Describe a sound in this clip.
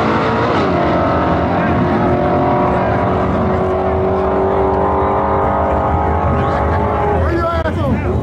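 Race car engines roar loudly as the cars speed away down the strip and fade into the distance.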